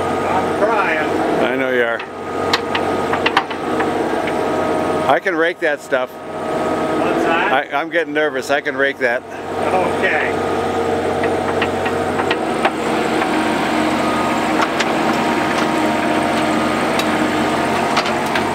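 An excavator bucket scrapes through rocky soil.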